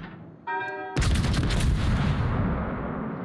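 Heavy naval guns fire with a deep boom.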